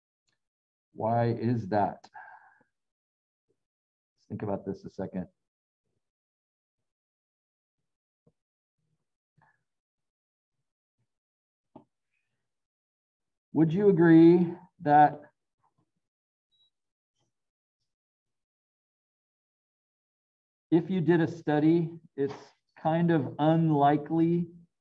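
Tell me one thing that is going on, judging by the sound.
A man talks calmly through a microphone, in short bursts with pauses.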